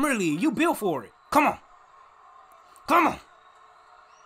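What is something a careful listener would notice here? A young man shouts excitedly close to a microphone.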